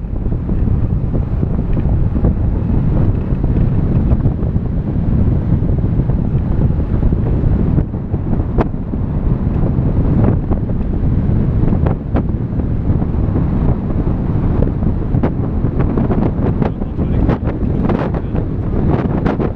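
Strong wind roars and buffets past, loud and rough throughout.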